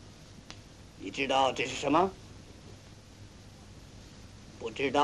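A middle-aged man speaks mockingly, close by.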